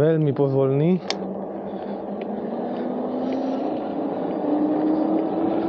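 An electric bike motor whines, rising in pitch as it speeds up.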